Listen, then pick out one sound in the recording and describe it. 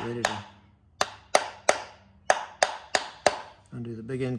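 A hammer taps sharply on metal, ringing briefly with each blow.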